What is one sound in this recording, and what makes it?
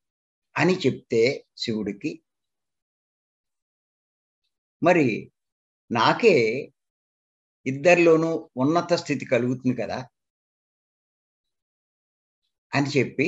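An elderly man speaks calmly in bursts with pauses, heard through an online call.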